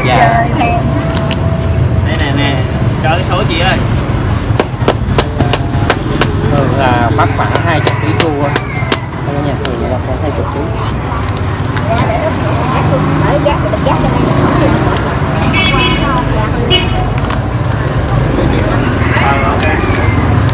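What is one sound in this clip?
Kitchen shears snip and crunch through crab shell.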